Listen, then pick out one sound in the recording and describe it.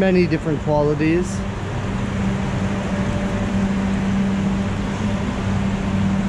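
Water trickles and splashes in small decorative fountains.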